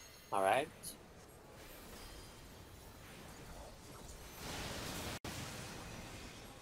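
Magic spells crackle and whoosh in a video game battle.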